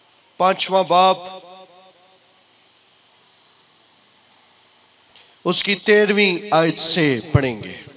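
A man speaks forcefully into a microphone, echoing through loudspeakers.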